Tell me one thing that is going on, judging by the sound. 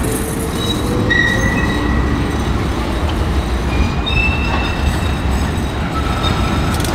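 Steel wheels squeal on the rails.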